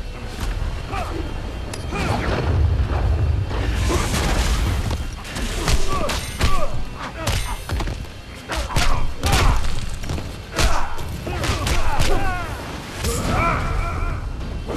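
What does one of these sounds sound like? Fighters grunt and shout as they strike.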